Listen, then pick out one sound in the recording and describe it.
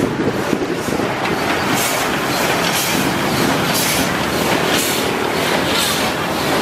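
A heavy locomotive engine rumbles steadily nearby.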